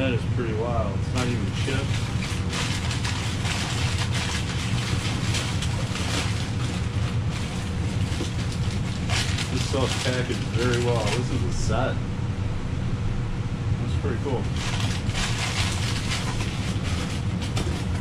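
Paper rustles and crinkles as items are unwrapped.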